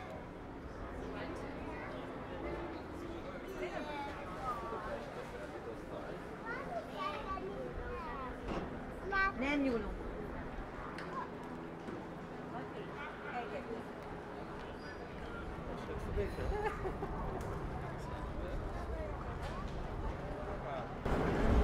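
Passers-by murmur and walk along a street outdoors.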